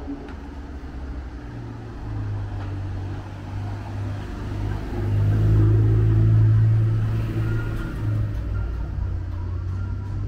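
Footsteps walk over cobblestones.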